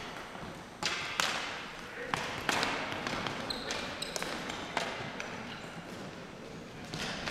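Hockey sticks clack against a ball and the floor in a large echoing hall.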